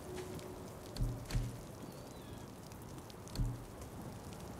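Soft game menu thuds sound as a selection changes.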